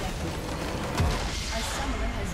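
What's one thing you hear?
A large explosion booms and crumbles.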